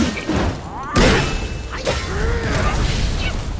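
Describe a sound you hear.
A fiery blast bursts with a loud roar.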